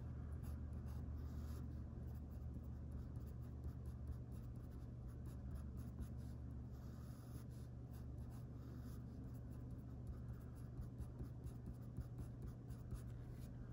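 A pen scratches on paper while writing.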